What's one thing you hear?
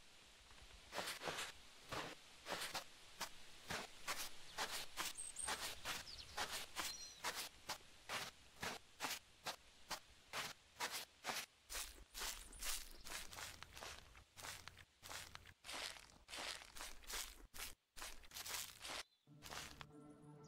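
Footsteps swish steadily through tall dry grass.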